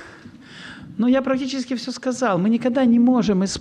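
A middle-aged man speaks loudly into a microphone, heard through loudspeakers in a large echoing hall.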